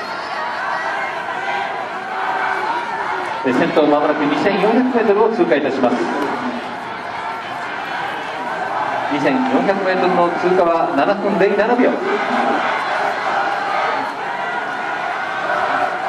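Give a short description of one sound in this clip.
A distant crowd of spectators murmurs and cheers steadily outdoors.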